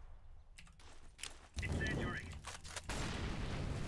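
A rifle clicks and rattles as it is handled.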